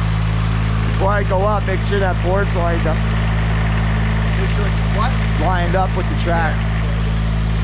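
A man talks loudly outdoors.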